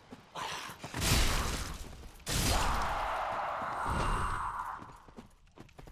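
Heavy sword blows strike with loud bursts.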